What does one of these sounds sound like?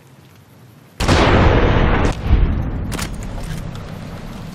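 A rifle fires a single loud shot that rumbles and fades away.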